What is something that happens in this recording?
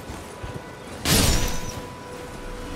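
A sword swishes sharply through the air.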